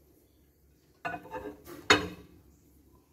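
A ceramic dish scrapes and clinks onto a glass turntable.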